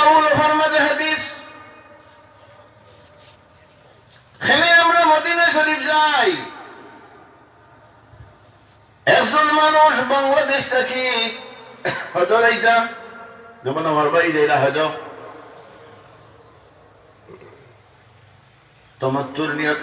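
An elderly man preaches with animation into a microphone, in bursts, through loudspeakers in an echoing space.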